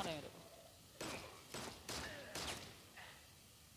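Gunshots crack several times in quick succession.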